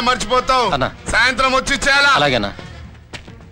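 A man speaks loudly and angrily.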